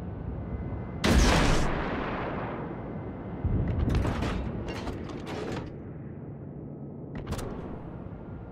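Heavy naval guns fire with loud, echoing booms.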